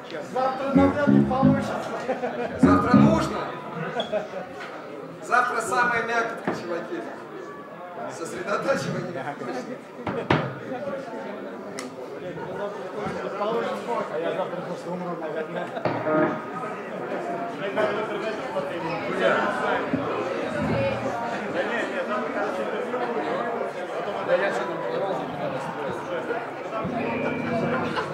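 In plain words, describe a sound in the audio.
Electric guitars play loudly through amplifiers in an echoing room.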